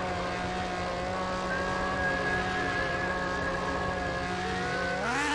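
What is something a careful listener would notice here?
A motorbike engine drones steadily at high revs, then rises in pitch near the end.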